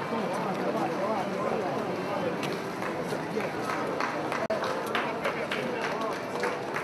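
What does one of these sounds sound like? Many feet shuffle and step along the street.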